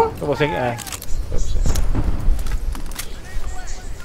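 A gun's magazine clicks and clacks as it is reloaded.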